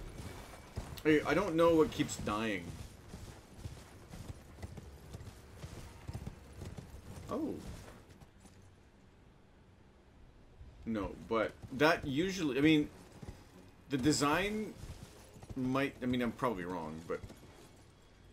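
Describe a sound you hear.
A man talks with animation into a headset microphone, close by.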